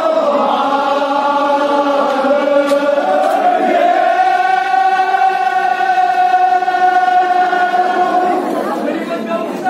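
A group of men chant together loudly in a long, drawn-out tone.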